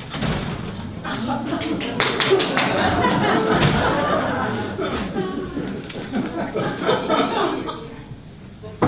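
A young woman speaks with animation, heard from across a hall.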